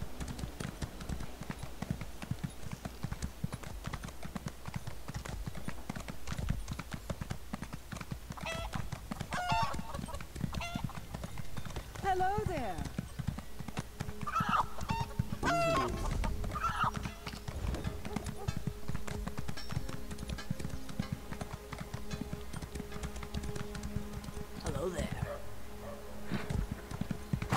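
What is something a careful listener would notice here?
Horse hooves clop steadily on the ground at a gallop.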